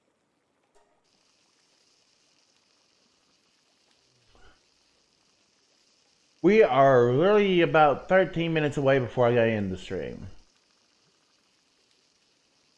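Food sizzles and bubbles in cooking pots over a fire.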